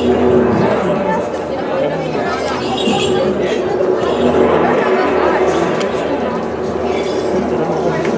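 A gong rings out when struck.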